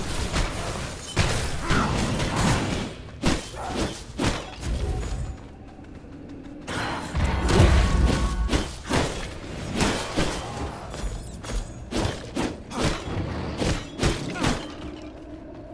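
Blades strike with sharp hits.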